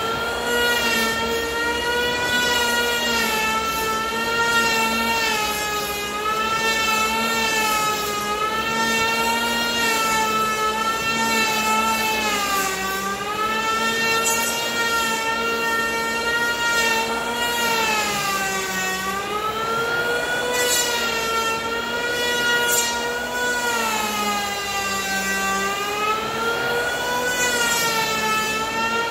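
A power planer whines as it shaves wood, its pitch dipping and rising under load.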